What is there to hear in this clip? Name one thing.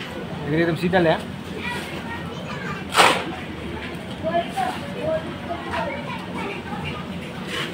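A hoe scrapes and slaps through wet concrete.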